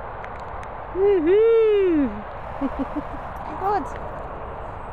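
A dog's rubber toy squeaks loudly several times.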